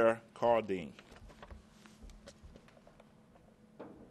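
Papers rustle.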